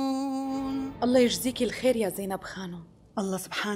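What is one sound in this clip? A young woman speaks softly and pleasantly.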